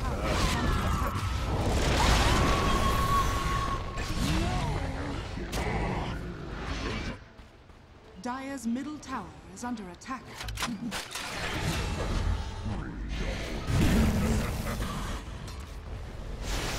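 Magic spells whoosh and crackle during a video game battle.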